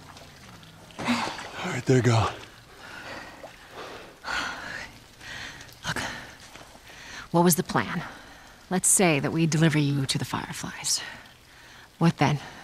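A woman speaks calmly and quietly.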